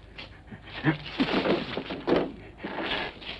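A man crashes into wooden crates with a loud clatter.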